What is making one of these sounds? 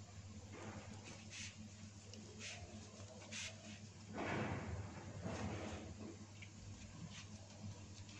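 Soft pastry rustles faintly as hands fold it.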